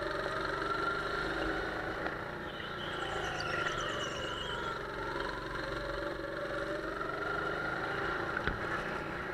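A go-kart engine whines steadily close by, rising and falling in pitch.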